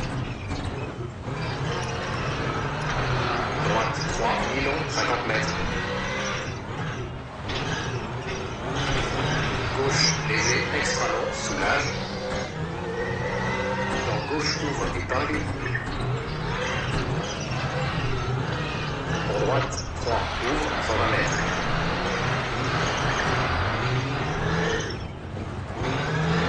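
A rally car engine revs and roars, rising and falling with gear changes.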